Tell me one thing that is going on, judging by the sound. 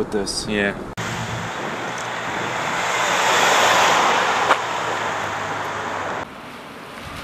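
A car drives past on the road, its engine and tyres rising and then fading.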